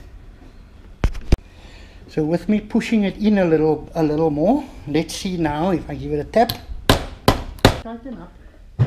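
Metal parts clank and knock.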